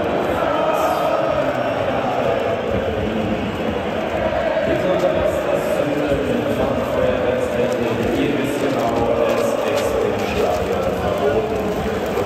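Large plastic sheets rustle and flap close by.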